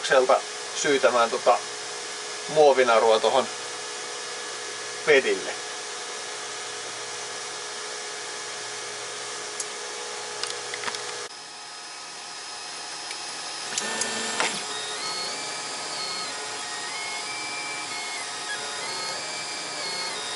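A 3D printer's motors whir and whine in shifting, stepping tones.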